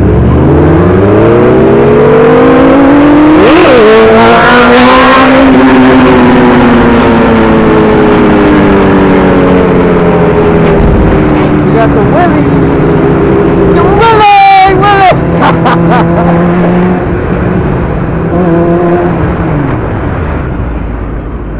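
A motorcycle engine roars close by, revving up and easing off.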